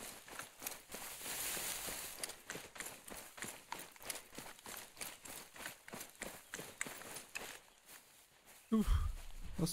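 Dry grass rustles and brushes close by.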